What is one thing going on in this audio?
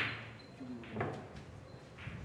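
Snooker balls click against each other.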